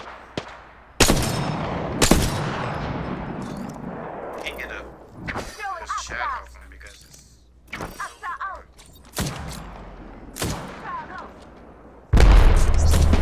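A heavy rifle fires single loud shots that echo and fade.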